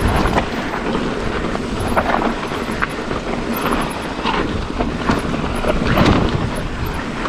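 A mountain bike's frame and chain rattle over bumps.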